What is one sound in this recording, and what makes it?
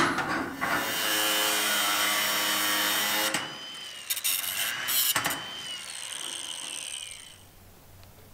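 A cordless drill whirs in short bursts.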